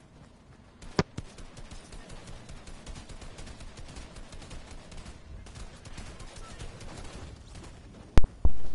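Gunshots crack nearby in short bursts.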